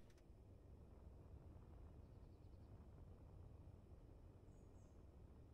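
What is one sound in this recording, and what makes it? Spaceship thrusters rumble low and steadily.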